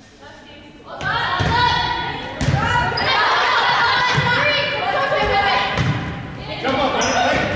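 Young women shout and call out loudly in a large echoing hall.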